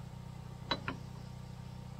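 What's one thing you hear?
A tool taps twice on wood.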